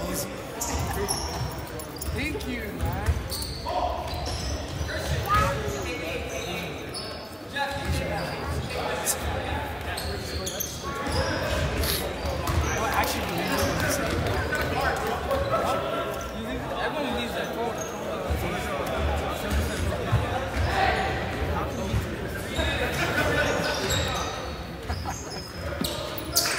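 A crowd of spectators chatters nearby in a large echoing hall.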